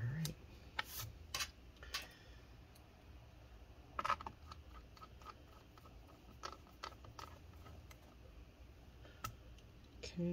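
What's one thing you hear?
Small plastic clicks and taps sound as a tool pries at a laptop's case.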